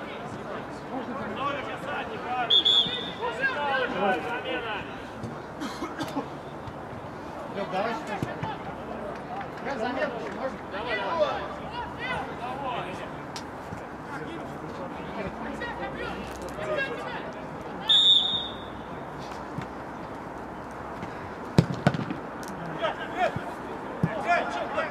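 Men shout to each other across an open-air pitch.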